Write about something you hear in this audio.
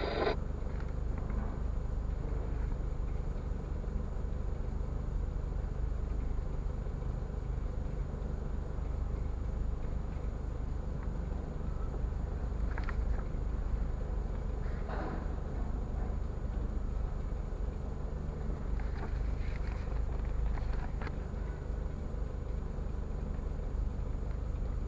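A car engine idles steadily, heard from inside the car.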